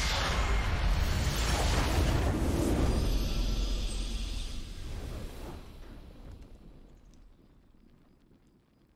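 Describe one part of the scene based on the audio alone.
A triumphant fanfare swells and then fades away.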